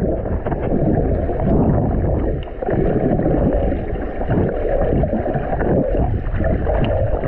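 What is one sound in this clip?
Air bubbles gurgle from a man's mouth underwater.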